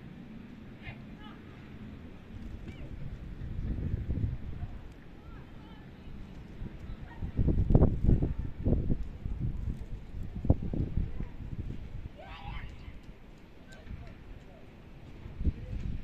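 Wind gusts and rumbles against the microphone outdoors.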